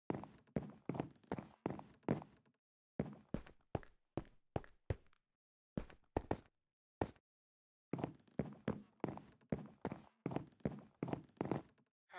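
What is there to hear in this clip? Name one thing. Footsteps thud steadily on wooden planks.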